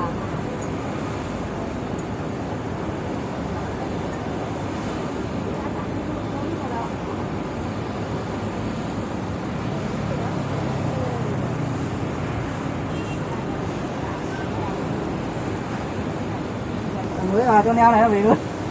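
Hands rub and rustle against insulated pipes.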